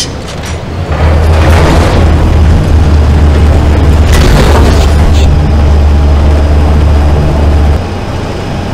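A hovering machine hums with a deep, steady drone.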